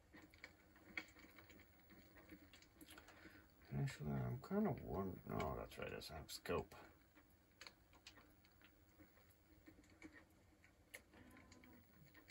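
A fire crackles in a fireplace.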